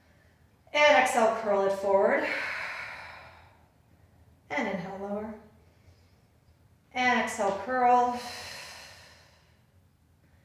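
A woman speaks calmly in short phrases in an echoing room.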